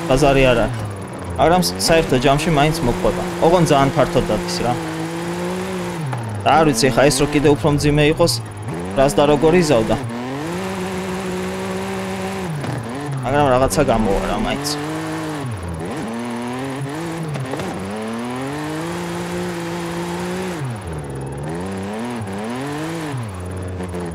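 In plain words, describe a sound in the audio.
A car engine revs hard and rises and falls in pitch.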